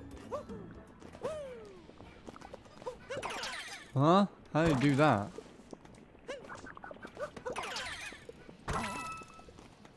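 Playful cartoon sound effects boing and chirp as a small figure jumps.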